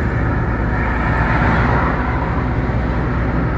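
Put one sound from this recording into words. A vehicle passes close by with a brief whoosh.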